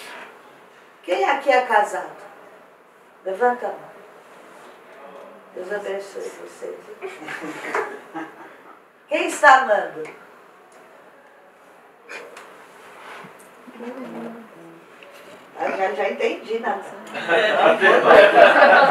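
A woman speaks with animation into a microphone in a room with a slight echo.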